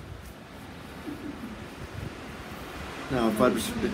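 A shaving brush swishes against a man's face.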